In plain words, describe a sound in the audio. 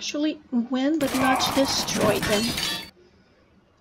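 Weapons clash as fighters battle.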